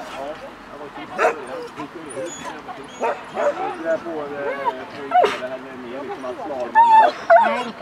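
A woman calls out commands to a dog with animation.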